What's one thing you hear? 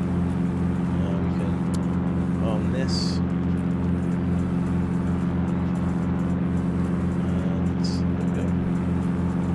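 A man speaks briefly and quietly into a microphone.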